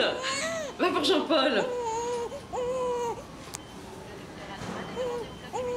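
A young woman cries out with strain close by.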